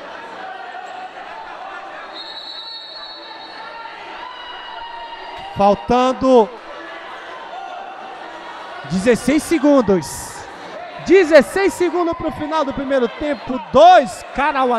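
Voices murmur in a large echoing hall.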